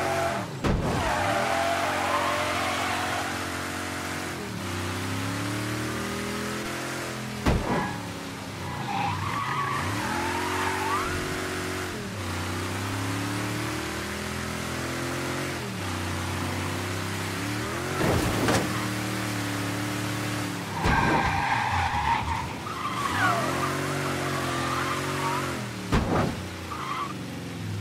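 A car engine revs hard and rises in pitch through repeated gear changes.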